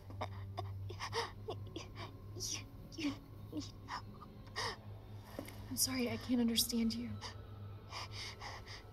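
A young girl speaks weakly and hesitantly.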